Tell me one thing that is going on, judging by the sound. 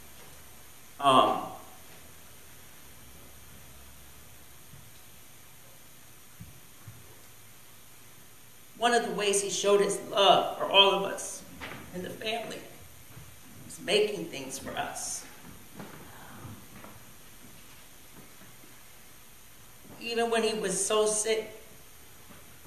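A middle-aged man speaks into a microphone slowly and earnestly, with long pauses.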